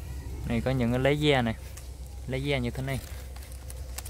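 Leaves rustle as a hand brushes them.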